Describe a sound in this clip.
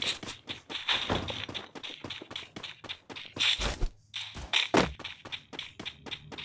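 Footsteps thud quickly and steadily on grass.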